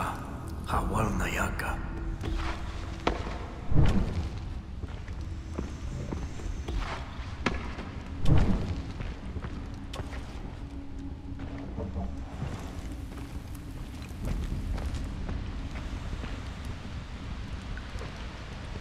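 A torch fire crackles steadily close by.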